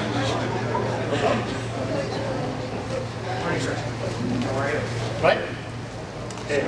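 A crowd murmurs and chatters.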